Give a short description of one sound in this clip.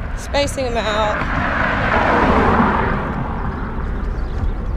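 A car rushes past close by and fades away.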